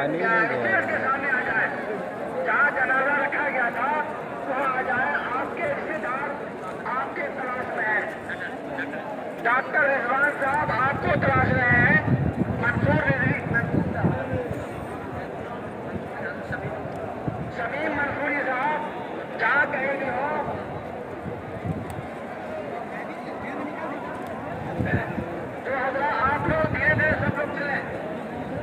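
A man speaks with fervour through a loudspeaker.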